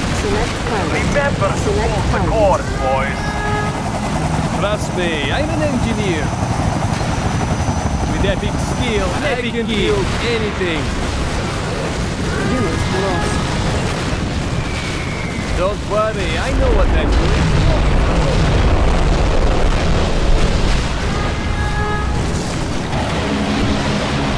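Explosions boom and rumble amid battle noise.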